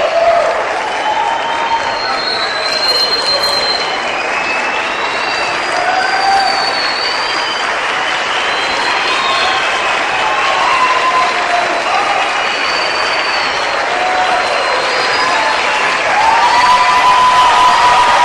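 A large children's choir sings loudly in a big hall.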